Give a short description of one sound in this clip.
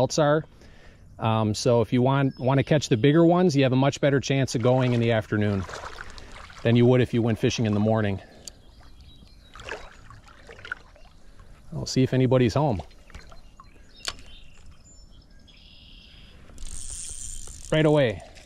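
A shallow river flows and ripples gently.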